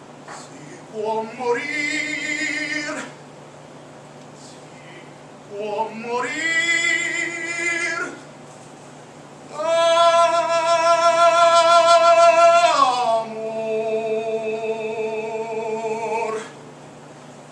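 A man sings long, held notes loudly through a microphone, in short phrases.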